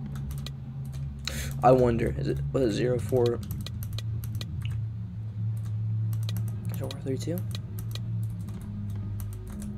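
A combination lock's dials click as they turn.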